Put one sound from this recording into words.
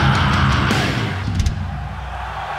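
A loud rock band plays a final chord with crashing drums and stops.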